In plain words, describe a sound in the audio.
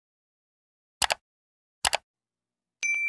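A mouse button clicks twice.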